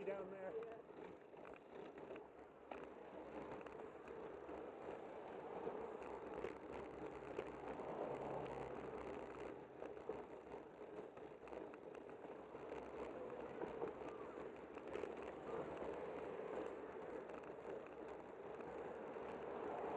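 Wind rushes loudly past the microphone outdoors.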